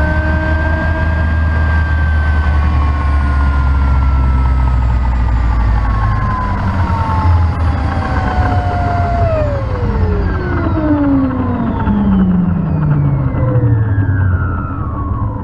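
A helicopter's rotor thumps with a heavy, low beat.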